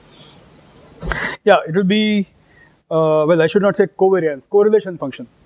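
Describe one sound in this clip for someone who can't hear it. A man lectures through a microphone, speaking calmly.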